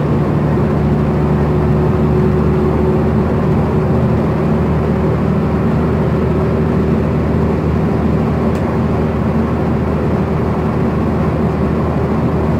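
A bus engine hums steadily from inside.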